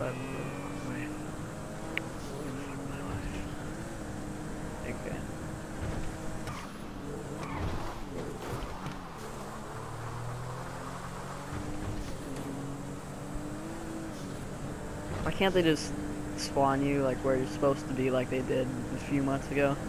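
A car engine hums steadily, rising and falling in pitch as it drives.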